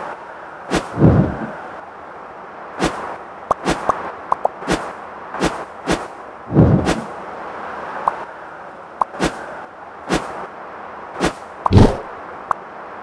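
Short game sound effects pop and whoosh as a character bounces.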